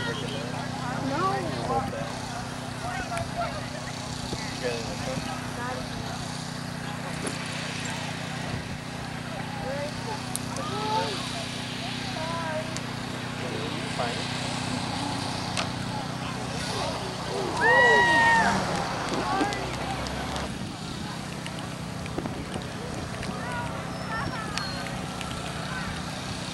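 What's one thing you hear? A crowd of spectators chats outdoors in the distance.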